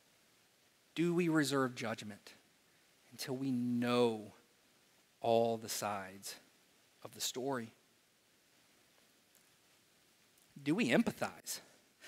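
A man speaks calmly through a microphone in a room with some echo, pausing between phrases.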